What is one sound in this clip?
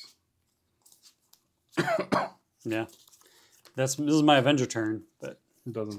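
Playing cards riffle as they are shuffled.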